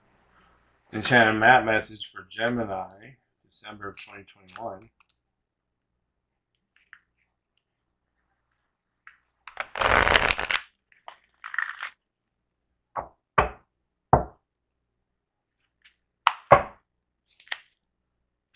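A deck of cards is shuffled, with soft riffling and tapping.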